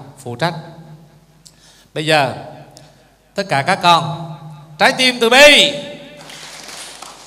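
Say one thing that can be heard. A middle-aged man speaks with animation into a microphone in an echoing hall.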